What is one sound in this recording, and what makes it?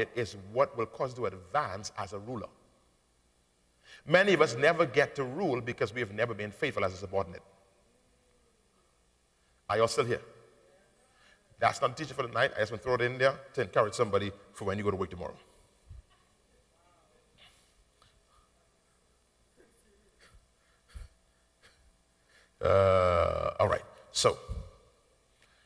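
A man preaches with animation through a microphone, his voice filling a large hall.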